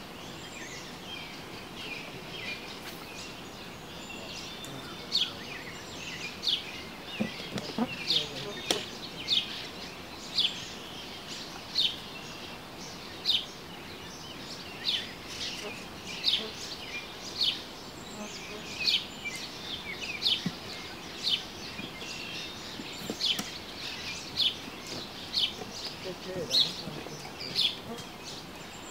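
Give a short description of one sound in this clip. Water trickles gently in a creek outdoors.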